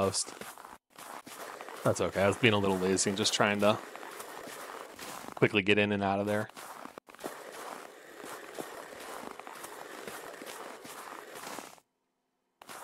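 A snow shovel scrapes across the ground, pushing snow.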